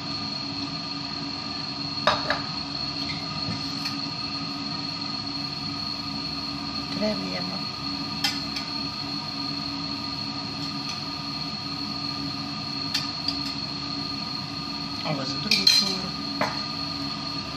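A fork scrapes on a plate.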